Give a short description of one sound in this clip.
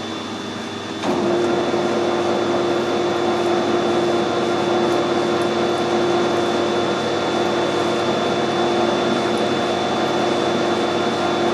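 A threaded rod grinds as it turns in the lathe.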